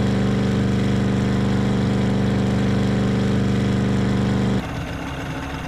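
A cartoon car engine hums steadily.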